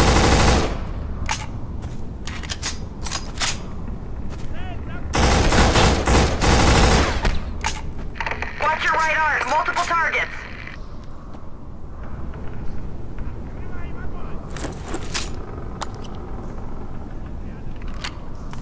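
Metal clicks and clacks as a rifle is reloaded.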